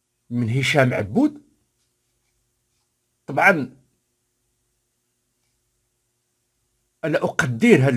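An older man speaks calmly and clearly into a close microphone.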